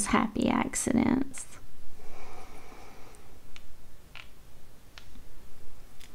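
A fingertip brushes softly across textured paper.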